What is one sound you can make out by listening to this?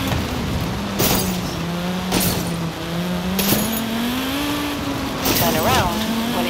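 Vehicles crash together with heavy bangs.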